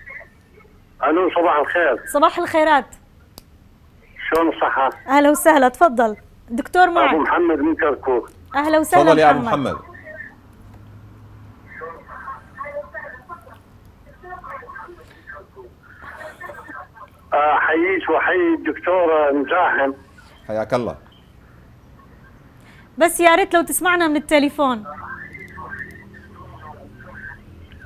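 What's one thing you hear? A woman speaks calmly into a microphone, close by.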